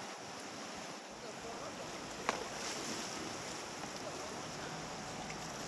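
River water rushes and splashes over rocks nearby.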